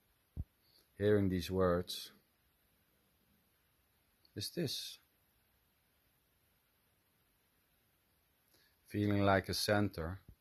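A middle-aged man speaks calmly in short phrases, close to the microphone.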